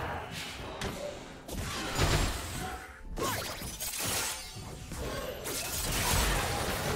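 Magic spells crackle and blast in a fast fight.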